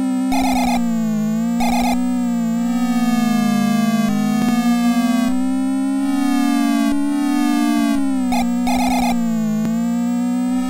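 A retro video game race car engine buzzes steadily, rising and falling in pitch.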